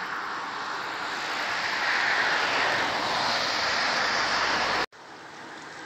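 A car approaches on a road with a rising rush of tyres.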